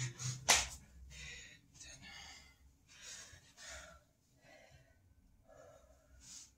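A man breathes out heavily close by.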